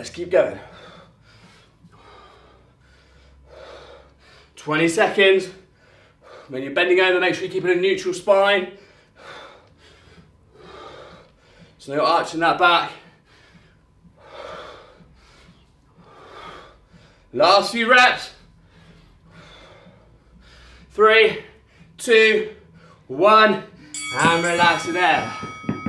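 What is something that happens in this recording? A man breathes out hard with each effort.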